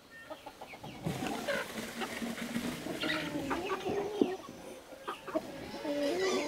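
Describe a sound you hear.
Piglets squeal and grunt while playing.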